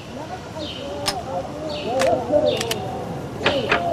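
A gun is reloaded with sharp metallic clicks.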